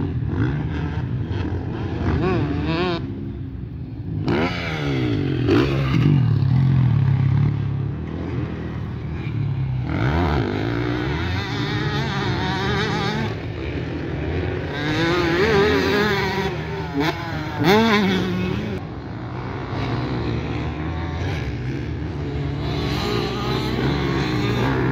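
Dirt bike engines rev hard and shift through the gears.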